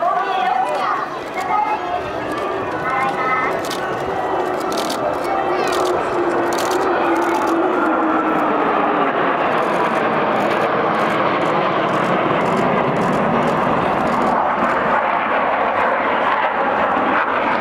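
A formation of jet planes roars overhead, growing louder as it passes.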